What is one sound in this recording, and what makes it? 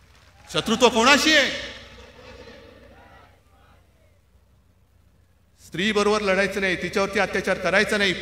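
A man speaks forcefully through a loudspeaker with a large echo outdoors.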